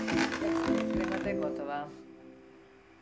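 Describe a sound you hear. An electric hand mixer whirs.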